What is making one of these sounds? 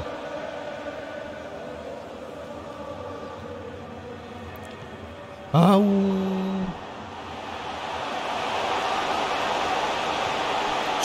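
A stadium crowd roars and chants steadily, swelling louder toward the end.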